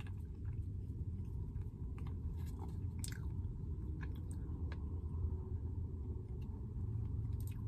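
A paper packet rustles and tears open.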